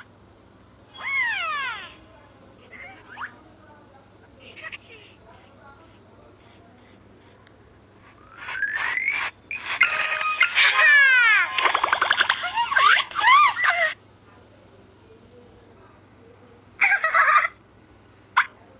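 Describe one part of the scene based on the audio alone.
Cartoonish game sound effects chime, sparkle and whoosh.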